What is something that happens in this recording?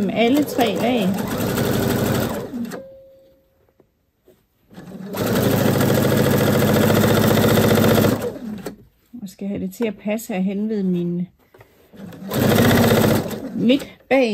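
A sewing machine runs in quick rattling bursts.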